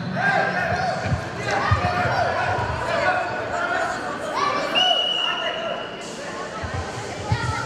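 A man calls out commands loudly.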